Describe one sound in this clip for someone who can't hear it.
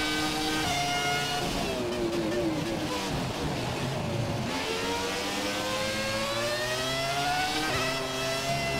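A racing car engine drops in pitch as the car brakes hard, then revs up again.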